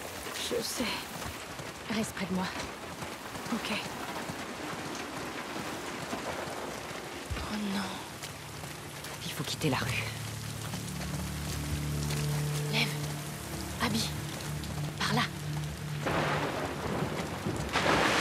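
Footsteps rustle through undergrowth.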